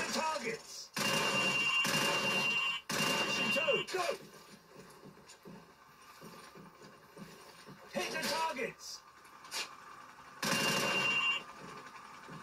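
Game gunfire bursts from a television loudspeaker.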